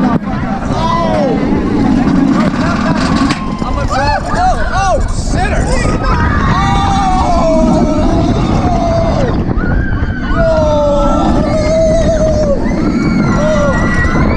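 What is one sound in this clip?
Riders scream and shriek with excitement.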